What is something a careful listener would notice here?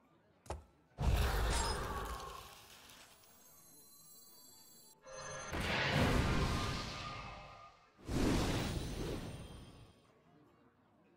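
Game sound effects whoosh and crash as cards are played.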